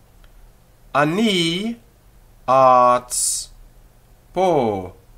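A man speaks loudly and with animation close to a microphone, in short bursts.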